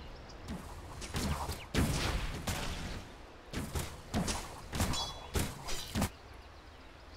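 Magic blasts and hits crackle in quick bursts during a fight.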